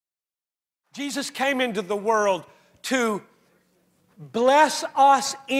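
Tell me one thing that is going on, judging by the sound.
An elderly man speaks with animation to an audience through a microphone.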